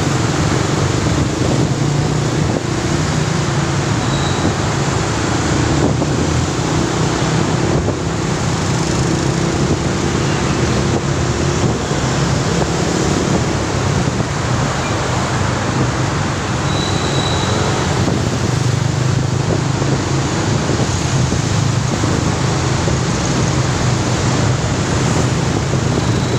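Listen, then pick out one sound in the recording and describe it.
Traffic engines rumble nearby.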